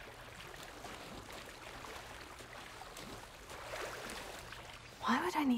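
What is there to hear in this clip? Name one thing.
Water splashes and swirls.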